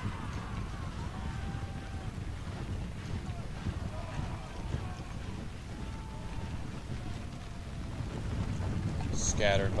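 Many soldiers march in step across a field.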